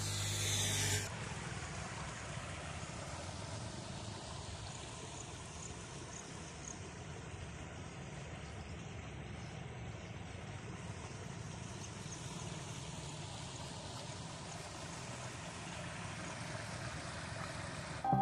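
A stream rushes and gurgles steadily close by.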